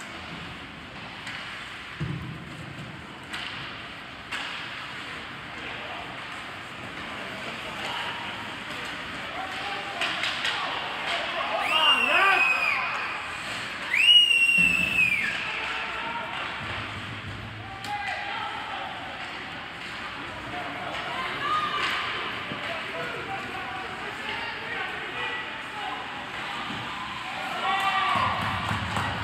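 Skates scrape across ice in a large echoing arena.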